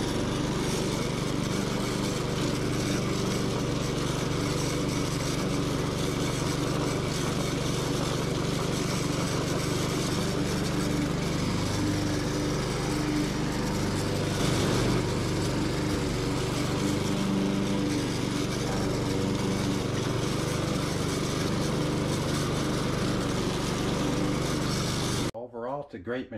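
A petrol lawn mower engine drones loudly and steadily close by.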